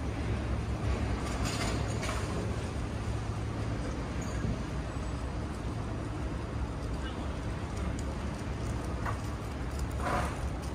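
A vending machine hums steadily.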